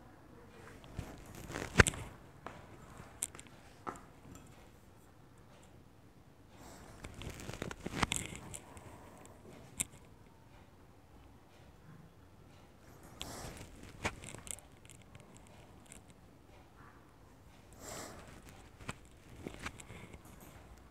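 A metal tube presses into soft clay with soft thuds and taps.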